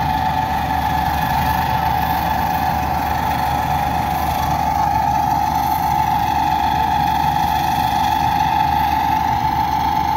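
A combine harvester engine drones steadily in the distance.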